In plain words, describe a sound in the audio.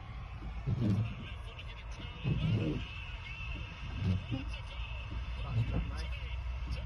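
A car engine hums, heard from inside the car.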